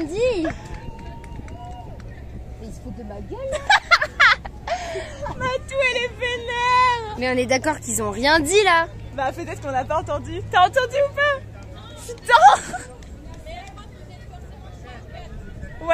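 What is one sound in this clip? A woman laughs heartily close by.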